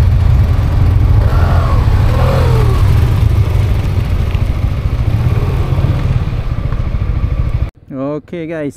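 A motorcycle engine idles with a low, steady rumble close by.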